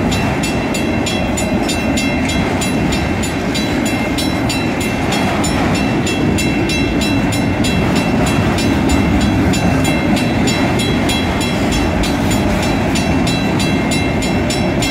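A railway crossing bell rings rapidly and steadily.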